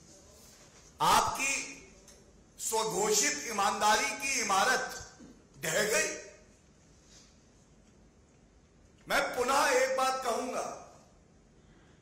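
A man speaks forcefully into a microphone, in bursts with pauses.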